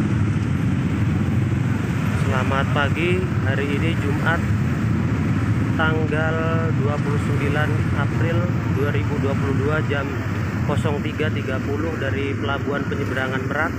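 Many motorbike engines rumble and idle close by.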